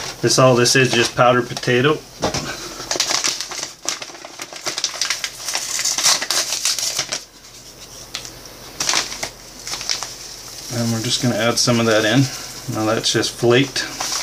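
A paper bag rustles.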